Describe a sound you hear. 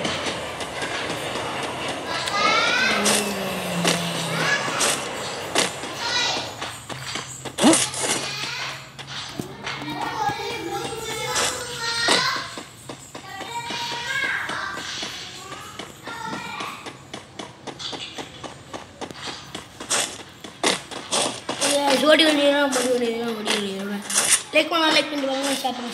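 Footsteps run quickly over grass and ground.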